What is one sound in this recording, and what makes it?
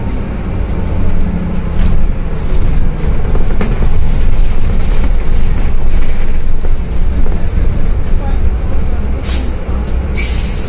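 A bus engine rumbles steadily from inside the bus.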